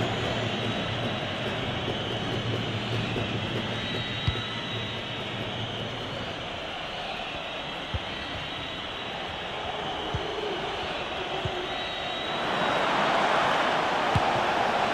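A stadium crowd roars steadily, swelling louder near the end.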